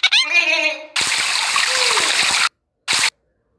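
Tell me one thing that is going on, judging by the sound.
A shower sprays water in a short burst.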